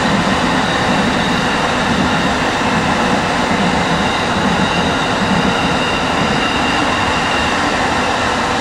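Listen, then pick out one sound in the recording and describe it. Trains rumble and clatter past on the tracks nearby.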